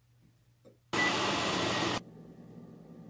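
A microwave keypad beeps.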